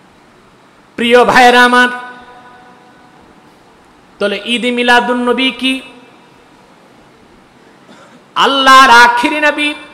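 A man chants loudly in long, drawn-out calls into a microphone.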